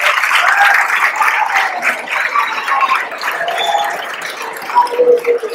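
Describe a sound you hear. A crowd chatters and cheers loudly.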